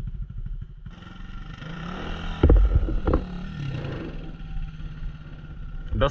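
A second dirt bike engine whines as it climbs toward the listener.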